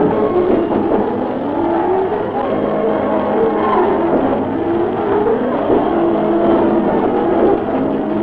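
A crowd of men shout and clamour.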